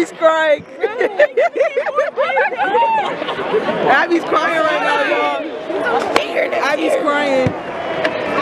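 Young women shriek and cheer excitedly close by.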